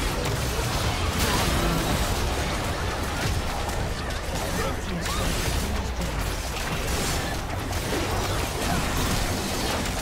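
Game battle effects crackle, clash and boom without pause.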